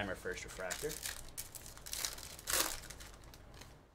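A foil card pack rips open.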